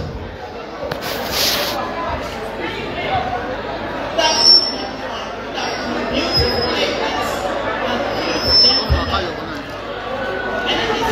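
A woman sings into a microphone through loudspeakers in a large echoing hall.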